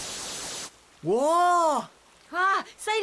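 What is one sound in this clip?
A young girl speaks excitedly.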